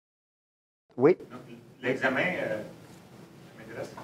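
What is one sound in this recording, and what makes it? A middle-aged man speaks through a microphone in an echoing room.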